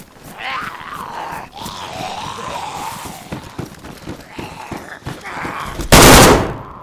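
Boots step on concrete and stairs.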